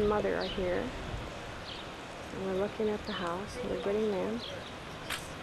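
An elderly woman talks with animation nearby, outdoors.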